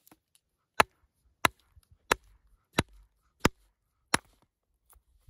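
A hammer strikes a rock in sharp, steady blows.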